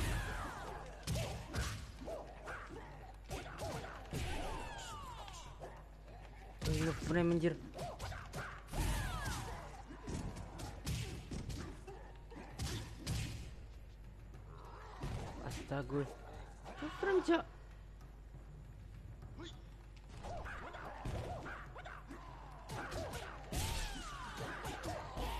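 Punches and kicks land with sharp thuds.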